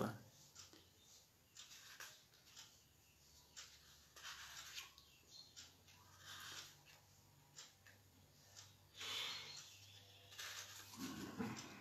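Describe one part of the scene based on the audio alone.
Pages of a book rustle as a man turns them.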